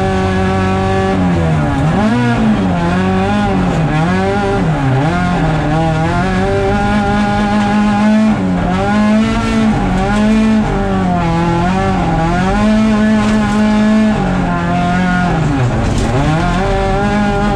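A rally car engine roars loudly up close, revving up and down as gears change.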